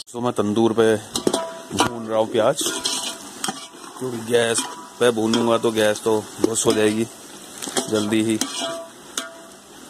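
A metal spoon scrapes and stirs onions in a pot.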